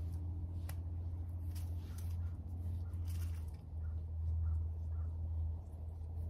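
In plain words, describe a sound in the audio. Seeds patter softly onto loose soil.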